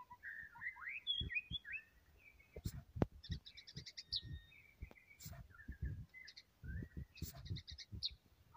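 A songbird sings close by with varied whistles, chirps and rapid trills.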